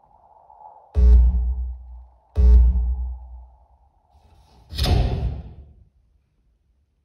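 A man strikes something with a stick, making loud, deep booms that ring out.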